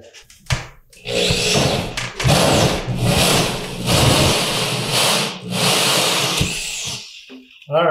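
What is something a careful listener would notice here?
A power drill whirs as it bores into a wall.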